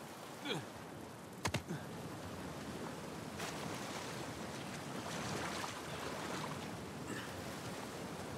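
A waterfall rushes and splashes into a pool.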